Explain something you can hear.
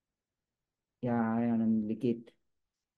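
Another man answers briefly over an online call.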